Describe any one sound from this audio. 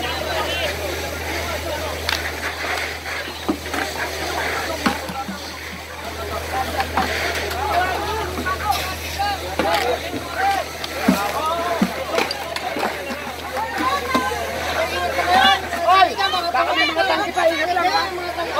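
A crowd of men and women shout and call out nearby, outdoors.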